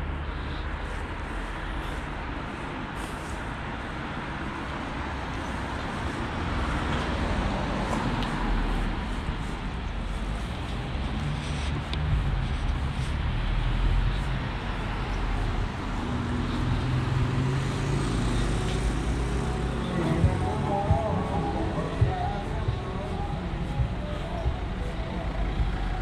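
Steady traffic rumble fills the street outdoors.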